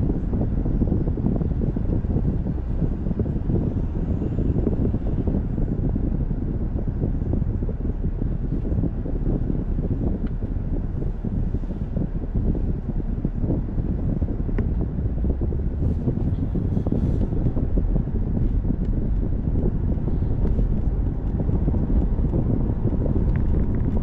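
A car's engine hums steadily as it drives along, heard from inside.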